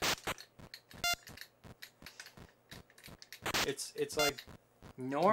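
Short electronic bleeps of a retro video game sound.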